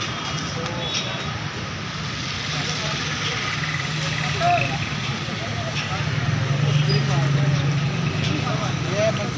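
Men chatter nearby in a busy outdoor crowd.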